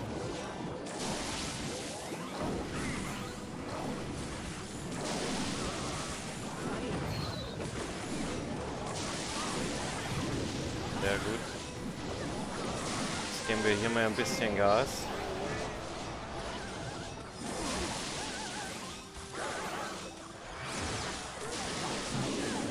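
Game music plays with battle sound effects, clashing and zapping.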